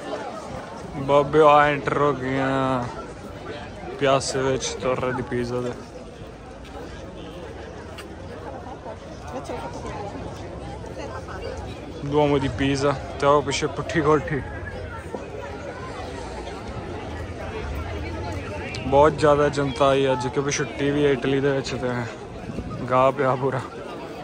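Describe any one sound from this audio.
A man talks close by.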